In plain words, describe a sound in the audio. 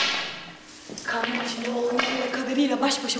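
A young woman sings loudly on stage.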